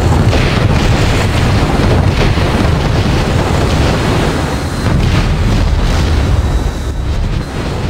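Explosions burst in the air.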